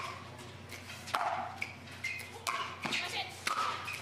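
Paddles hit a plastic ball back and forth with sharp pops.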